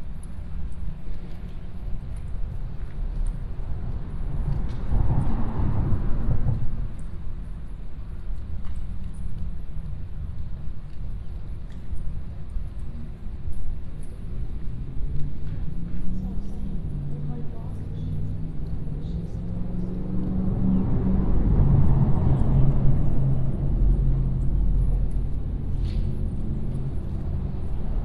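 Wind blows across open water outdoors.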